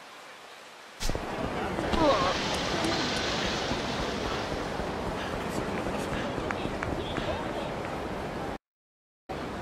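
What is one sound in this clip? Footsteps run quickly along a hard street.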